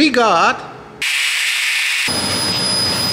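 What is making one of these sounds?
An angle grinder whines as it grinds metal.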